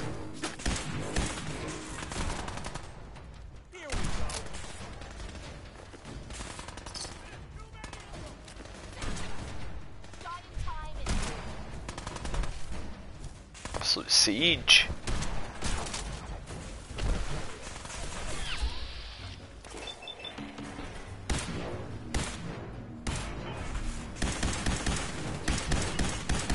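A laser gun fires sharp, buzzing shots.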